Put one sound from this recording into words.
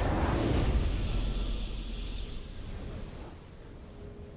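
A triumphant game victory fanfare rings out loudly and fades away.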